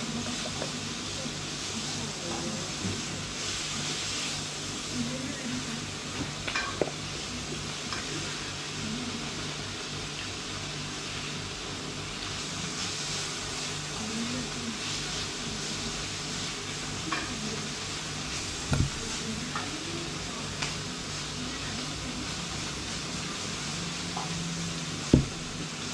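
A man talks casually close by.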